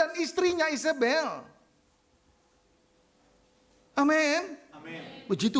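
A middle-aged man speaks with animation into a microphone, pausing between phrases.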